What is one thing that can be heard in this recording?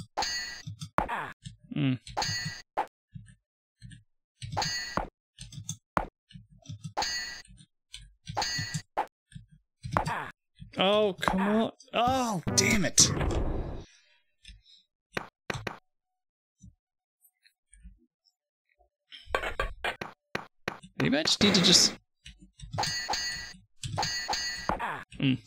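Swords clash in a video game.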